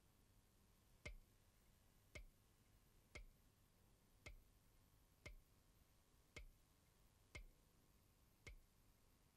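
A metronome ticks steadily, about once a second.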